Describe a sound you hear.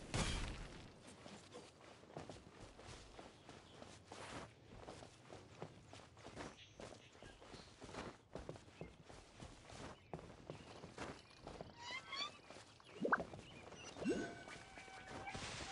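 Footsteps patter quickly on grass.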